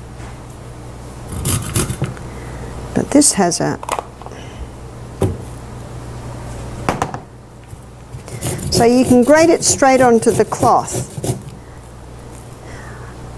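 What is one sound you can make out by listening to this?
A grater scrapes against a lemon.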